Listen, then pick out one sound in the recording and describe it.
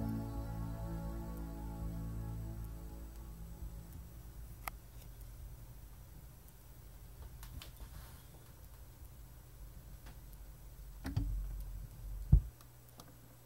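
Music plays from a record and slowly fades out.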